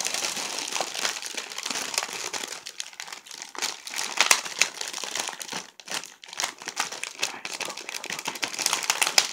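A plastic cookie package crinkles in a woman's hands.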